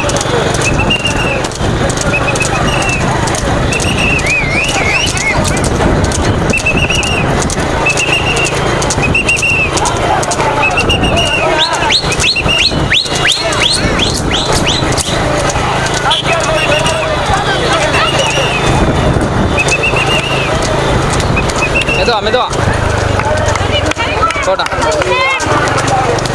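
A horse's hooves clop quickly on a paved road.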